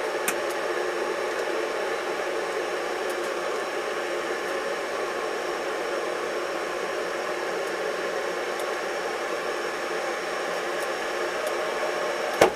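A small wooden wick holder clicks softly as it is lifted and set down.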